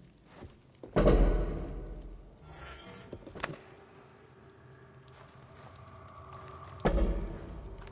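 Heavy thuds land on creaking wooden planks.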